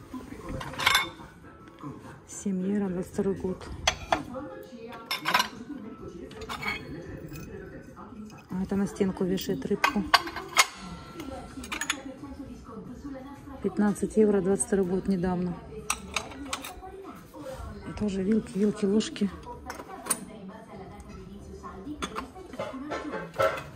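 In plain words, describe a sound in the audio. Ceramic dishes clink and rattle as they are picked up and set down.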